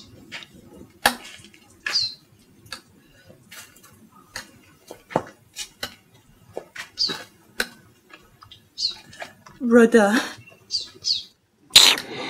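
Crutches tap on the ground as a person walks slowly.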